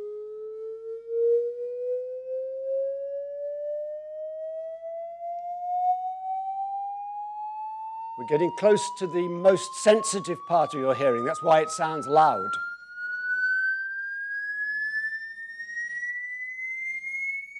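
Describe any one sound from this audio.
A steady electronic tone plays through loudspeakers, slowly rising in pitch.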